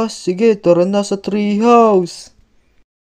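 A young boy's cartoon voice speaks with animation.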